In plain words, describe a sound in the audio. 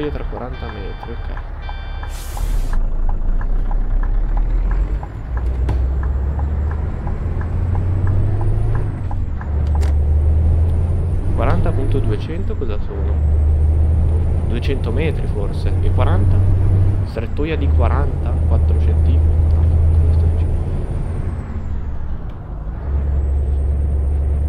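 A truck engine rumbles steadily, rising and falling as the gears change.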